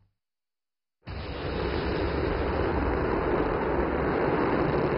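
A rocket engine roars loudly and steadily.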